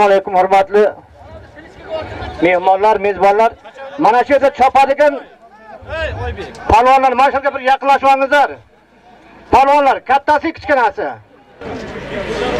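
An elderly man speaks loudly into a microphone, heard through loudspeakers outdoors.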